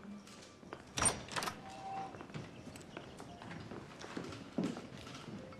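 A door opens.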